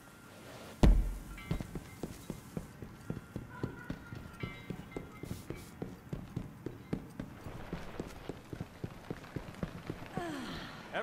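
Footsteps tap quickly and steadily on a hard floor.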